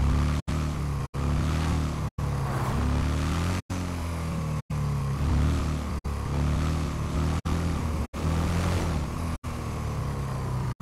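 A small engine hums steadily as a motor trike drives along.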